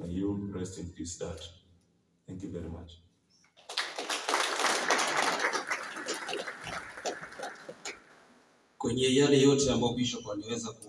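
A man speaks through a microphone over loudspeakers in a large echoing hall.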